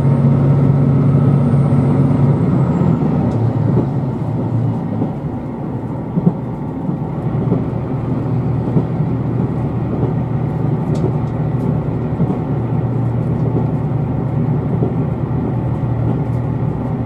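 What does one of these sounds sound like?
A vehicle's engine and tyres rumble steadily from inside on a wet road.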